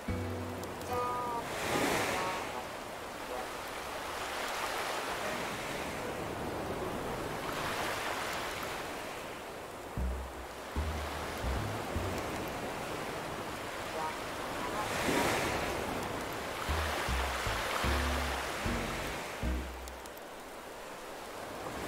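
Waves wash gently onto a shore, swelling and receding.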